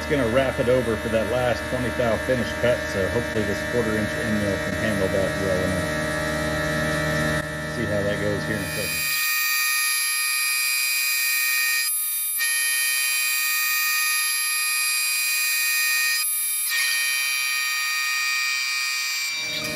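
A milling machine whines steadily as it cuts metal.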